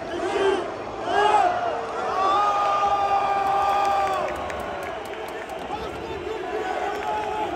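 A large stadium crowd chants and sings loudly in unison, echoing around an open arena.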